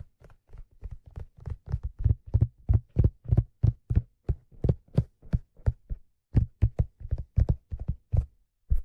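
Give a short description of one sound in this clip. Fingers tap and scratch rapidly on a stiff leather hat, close up.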